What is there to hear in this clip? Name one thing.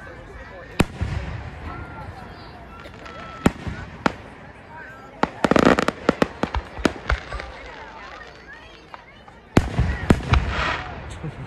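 Aerial firework shells burst with sharp booms that echo outdoors.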